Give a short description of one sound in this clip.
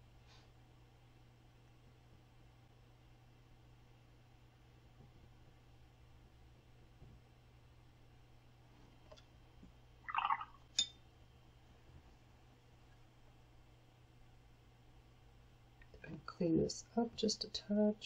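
A brush strokes softly on paper.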